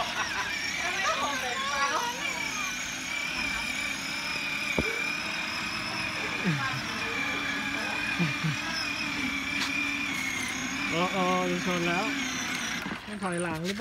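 An electric toy car motor whines steadily.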